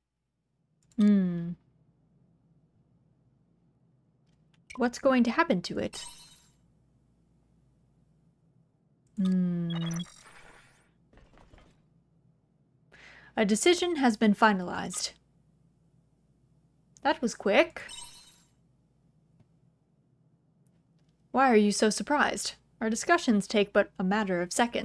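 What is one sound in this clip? A young woman talks with animation into a microphone, in short bursts.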